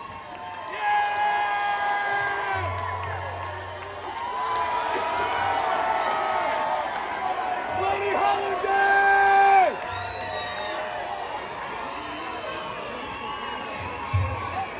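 A man sings loudly through a microphone in a large echoing hall.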